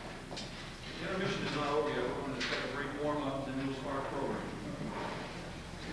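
A man speaks out loud in a large, echoing hall.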